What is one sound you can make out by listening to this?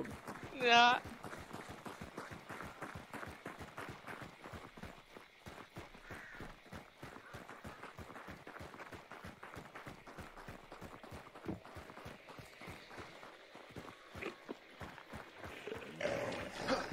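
Footsteps rustle through tall grass and crunch on dirt.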